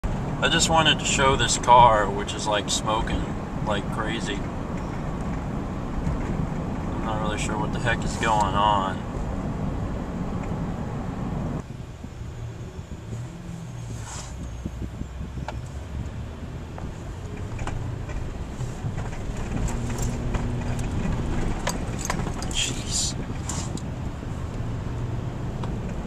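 A car engine hums steadily from inside the car as it drives along a road.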